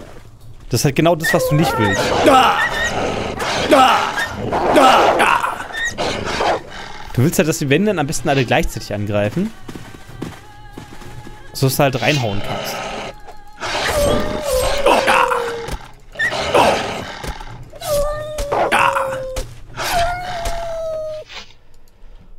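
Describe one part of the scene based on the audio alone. Hyenas yelp and whine in pain.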